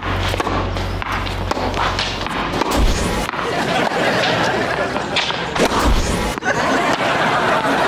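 A tennis ball is hit back and forth with rackets.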